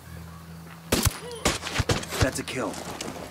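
A rifle fires several loud shots in quick succession.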